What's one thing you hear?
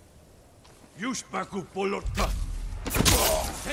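A sword slashes into armour with a sharp metallic clash.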